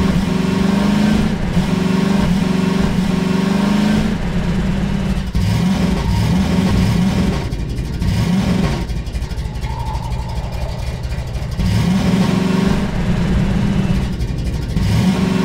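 Tyres rumble over gravel and rough ground.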